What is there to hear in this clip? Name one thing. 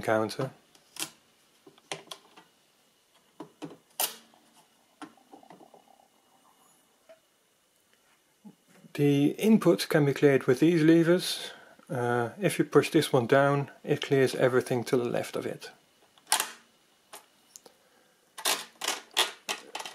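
Metal levers click and snap.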